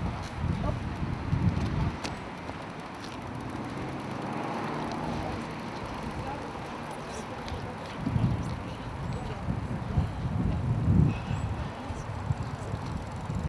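Bicycle tyres roll over pavement outdoors.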